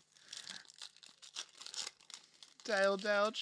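A foil wrapper crinkles and tears in close hands.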